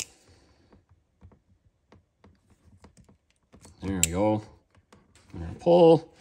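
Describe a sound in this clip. Crimping pliers squeeze a wire connector with a click.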